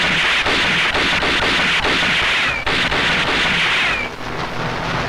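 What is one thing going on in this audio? A pistol fires a rapid series of shots.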